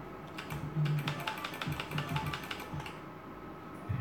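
A slot machine rattles off quick ticking sounds as it counts up a win.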